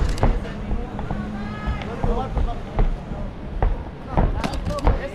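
A crowd of spectators shouts and cheers nearby.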